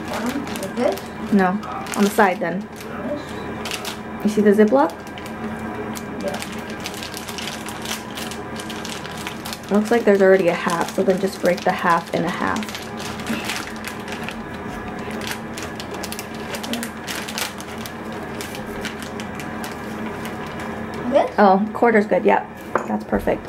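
A plastic bag crinkles and rustles in a boy's hands.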